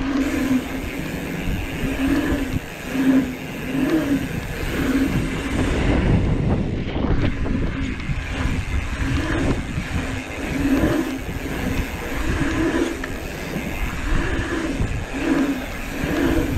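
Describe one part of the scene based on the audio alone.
Bicycle tyres roll and rumble over a paved track.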